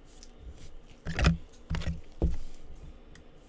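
Gloved hands bump and knock against a card holder.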